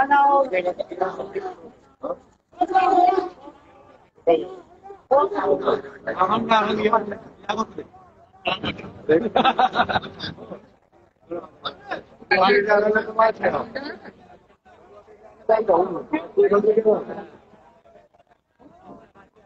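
A crowd of men murmurs in the background.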